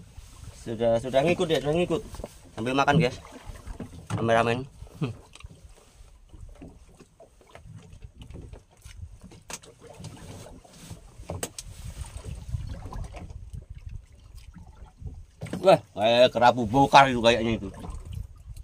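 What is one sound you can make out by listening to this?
A young man talks loudly nearby, outdoors on open water.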